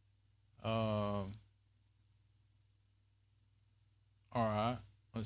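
A middle-aged man calls out in two long, drawn-out sounds close to a microphone.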